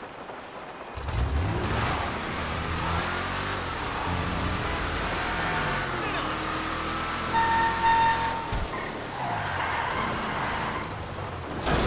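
Tyres splash through water on a wet road.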